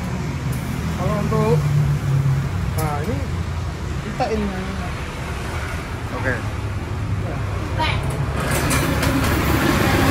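A tyre-changing machine's motor hums steadily.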